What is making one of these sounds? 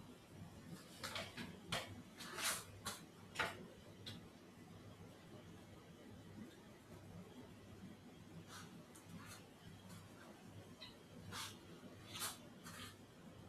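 Feet shuffle and step softly on a padded floor.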